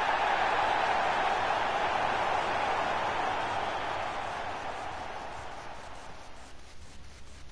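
A large crowd roars and cheers loudly, then slowly fades.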